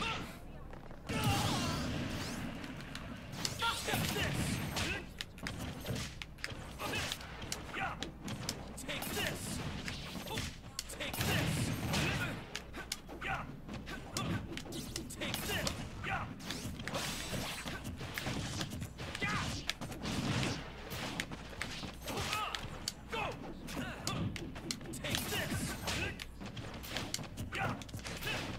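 Fighting game sound effects of hits and energy blasts crackle and boom.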